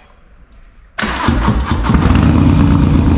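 A motorcycle engine starts with a roar.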